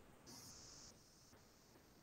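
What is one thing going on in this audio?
A young woman speaks quietly over an online call.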